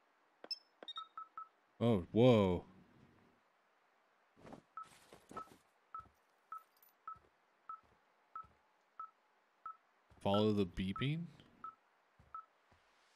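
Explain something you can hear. A handheld device beeps at a steady, even pace.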